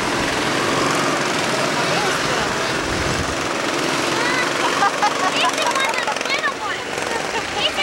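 Go-kart engines buzz and whine as the karts drive past.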